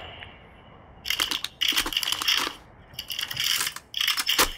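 A gun's parts click and clatter during a reload.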